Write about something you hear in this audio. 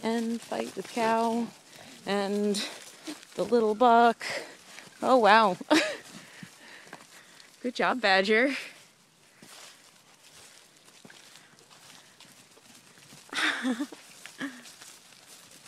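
Goats bleat loudly and often up close.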